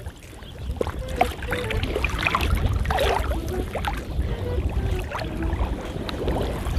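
Wind blows across open water and rumbles against the microphone.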